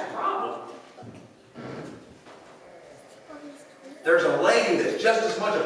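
An elderly man preaches into a microphone, heard through loudspeakers in a large echoing hall.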